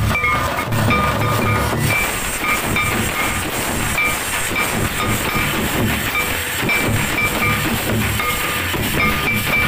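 A drum beats in a steady rhythm.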